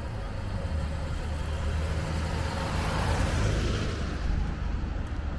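A vintage saloon car drives past.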